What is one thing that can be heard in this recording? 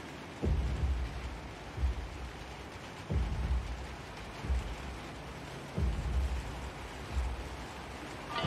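Footsteps thump on metal ladder rungs in a slow, steady climb.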